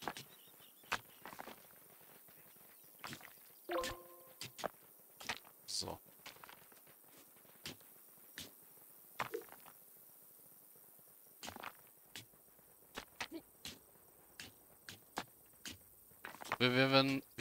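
Picks tap against stone in short, scattered clicks.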